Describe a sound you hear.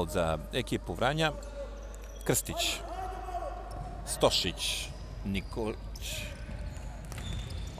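A ball is kicked with sharp thuds in an echoing hall.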